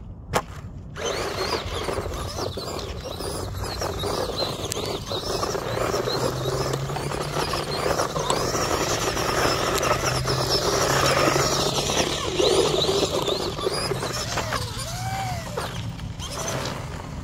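Tyres spray and crunch over loose dirt.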